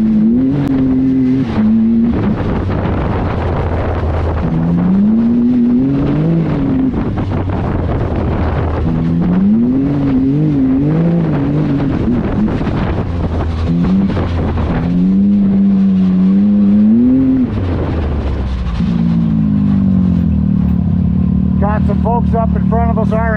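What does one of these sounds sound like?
An off-road vehicle's engine revs up and down, close by.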